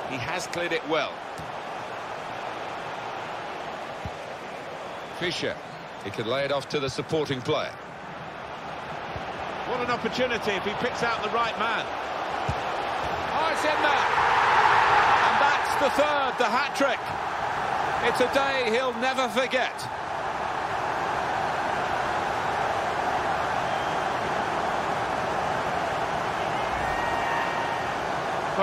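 A stadium crowd roars, swelling loudly to a cheer.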